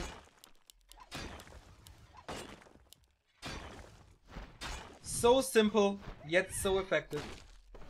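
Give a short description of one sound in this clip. Swords and blows clash in a fantasy battle.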